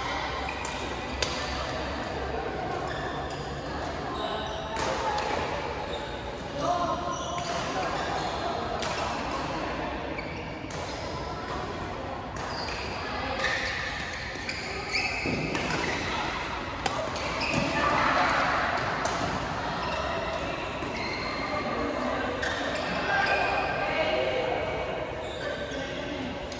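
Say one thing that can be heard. Many players' voices murmur and call out around the hall.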